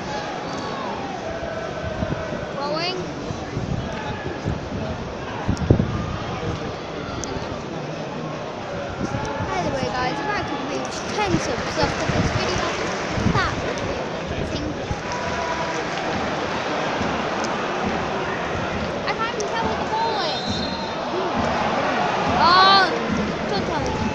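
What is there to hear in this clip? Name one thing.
Men in the crowd nearby shout and call out.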